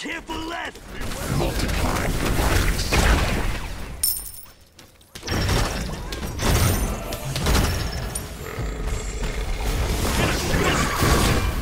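Fiery spell blasts crackle and roar in a game battle.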